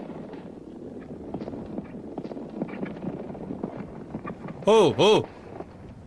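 A horse's hooves thud on dry ground.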